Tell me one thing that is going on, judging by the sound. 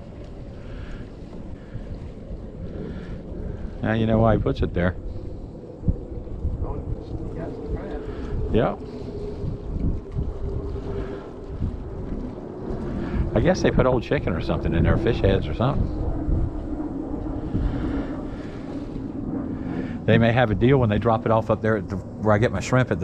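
Wind blows outdoors across the microphone.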